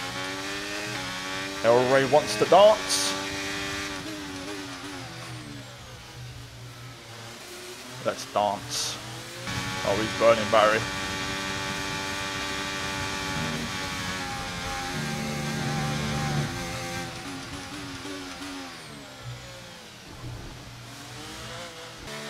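A racing car engine whines and changes pitch as it shifts gears.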